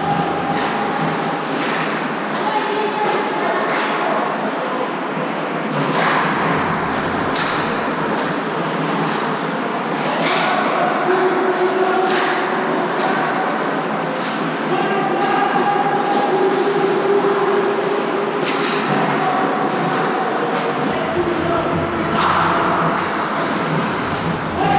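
Skate blades scrape and carve on ice.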